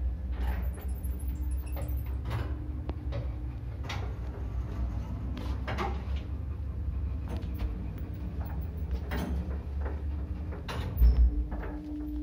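An elevator cabin hums and rumbles low and steadily as it moves.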